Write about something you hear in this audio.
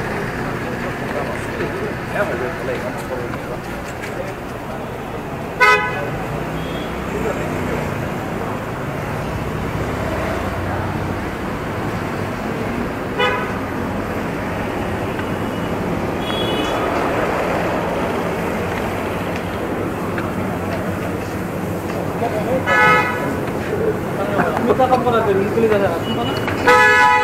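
Street traffic hums steadily outdoors at night.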